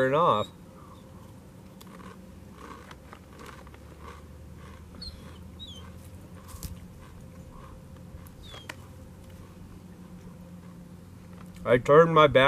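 A man crunches on chips.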